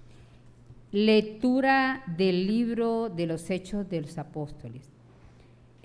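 A woman reads out calmly through a microphone.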